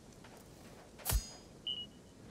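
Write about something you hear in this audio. A heavy object thuds down with a sharp bang.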